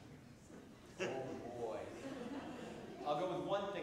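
A man speaks calmly and warmly through a microphone in a large echoing room.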